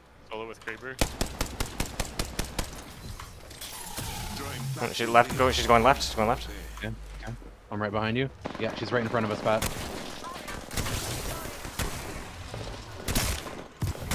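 Rapid gunshots fire in short bursts.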